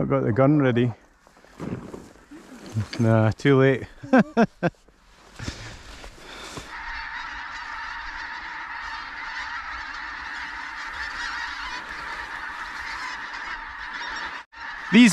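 A large flock of geese honks loudly overhead.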